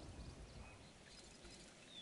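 Water splashes as two dinosaurs fight.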